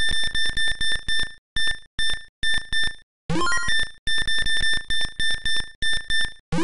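Short electronic beeps repeat rapidly.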